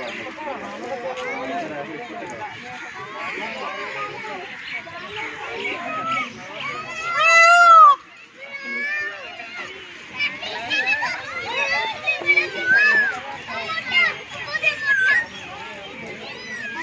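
Children chatter and shout excitedly nearby.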